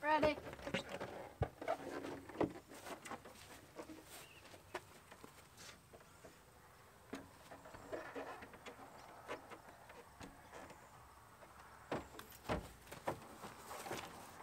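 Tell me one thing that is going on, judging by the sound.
A large board bumps and knocks against a car roof rack.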